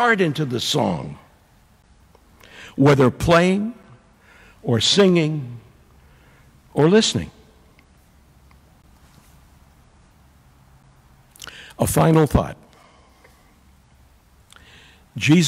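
A middle-aged man speaks with animation through a microphone in an echoing hall, pausing often.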